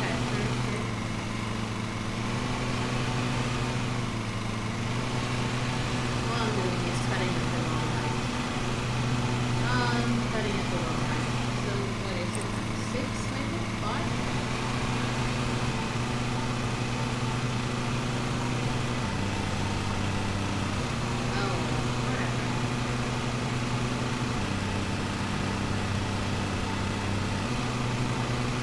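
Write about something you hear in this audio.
A small lawn mower engine hums steadily, shifting pitch now and then.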